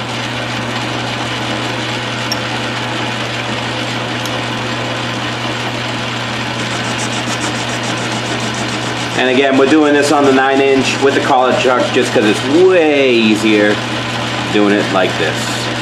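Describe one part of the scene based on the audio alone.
A metal lathe motor hums steadily.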